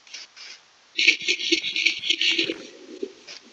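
Water splashes under quick steps.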